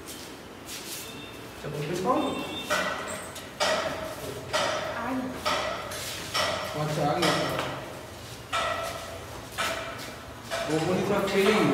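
Sandals clatter on a hard floor.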